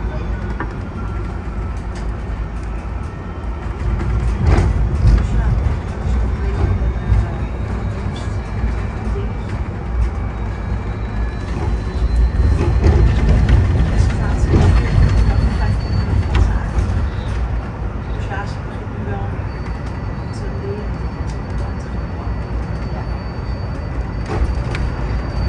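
Loose fittings rattle and click inside a moving bus.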